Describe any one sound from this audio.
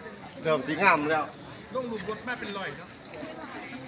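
Young men and women chat and call out nearby outdoors.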